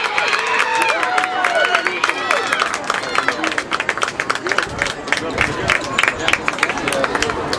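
A large crowd of spectators cheers and shouts loudly outdoors.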